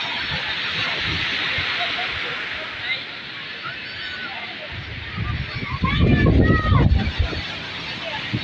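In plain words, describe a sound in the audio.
Water splashes as a boy thrashes in the surf.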